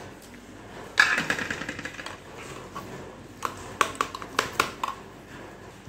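A spoon clinks and scrapes against a metal cup while eggs are beaten.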